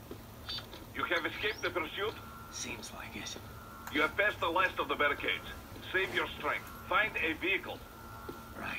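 A man speaks calmly over a radio link.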